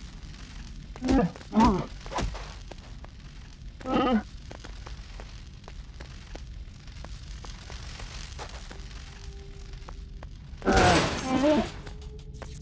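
Sparks burst and crackle from a blaster hit on metal.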